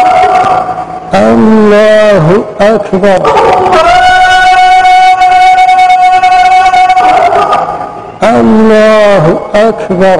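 A man chants in a long, melodic voice through a microphone, echoing in a large space.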